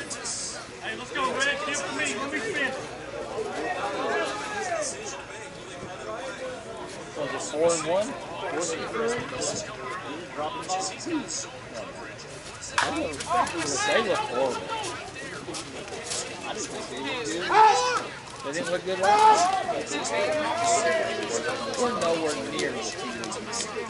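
Men talk and call out across an open outdoor field.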